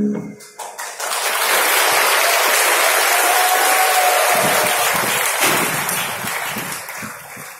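An audience cheers and applauds loudly in a large hall.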